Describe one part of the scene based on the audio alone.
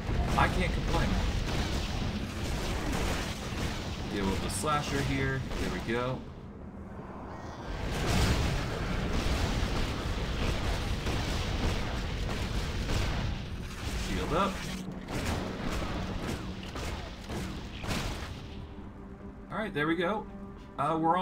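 Magic spells blast and crackle in a video game.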